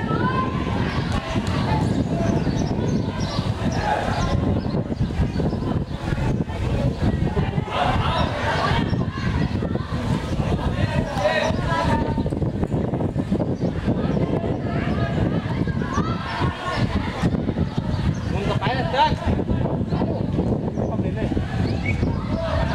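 Children shout and call out across an open playing field.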